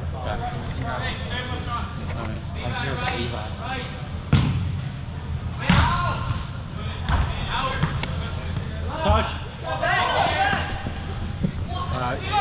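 Players shout and call to each other in a large echoing hall.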